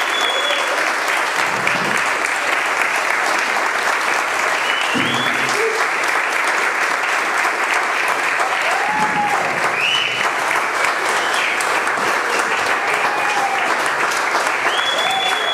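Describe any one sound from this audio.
A crowd of men and women cheers and calls out.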